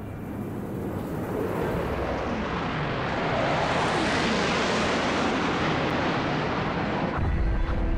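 A missile roars overhead, growing louder as it approaches.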